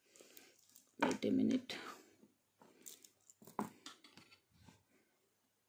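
A bead necklace clinks softly.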